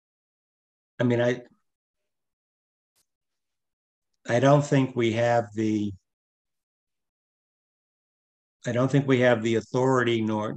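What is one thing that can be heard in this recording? An elderly man speaks in short bursts over an online call.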